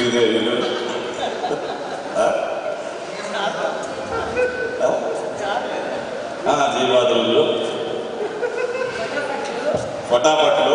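A middle-aged man speaks with animation into a microphone over loudspeakers.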